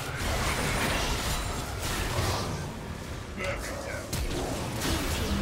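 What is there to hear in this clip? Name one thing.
Spell blasts and weapon hits crackle in a fast video game battle.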